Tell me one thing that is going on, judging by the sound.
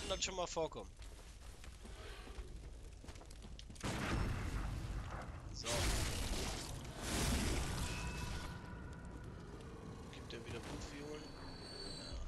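Footsteps crunch on dirt.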